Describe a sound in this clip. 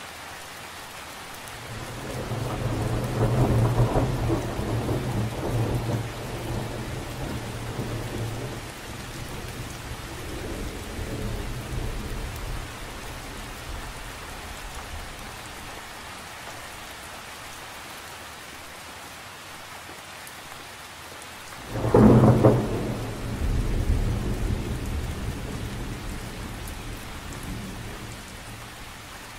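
Light rain patters steadily on a lake's surface.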